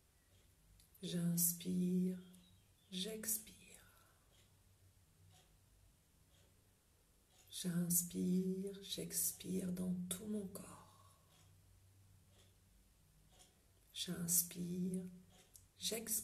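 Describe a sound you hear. A woman speaks slowly and calmly close to the microphone, with long pauses.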